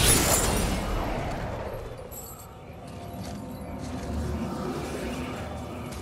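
A magical shimmer hums and sparkles.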